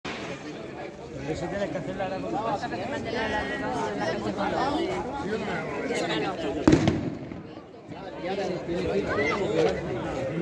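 Several men and women chatter close by, outdoors.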